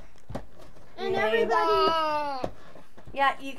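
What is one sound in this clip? A young boy talks loudly close by.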